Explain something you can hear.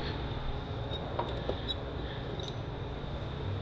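Metal tools clink and rattle in a drawer.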